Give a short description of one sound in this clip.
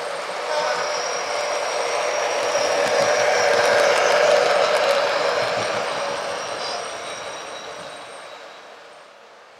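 A model train rumbles past along the track and fades away.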